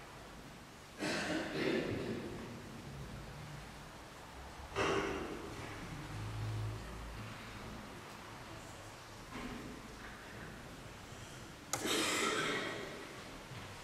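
A man sings a short chant in a large echoing hall.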